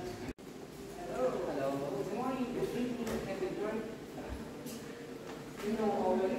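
Several people murmur quietly in a large echoing room.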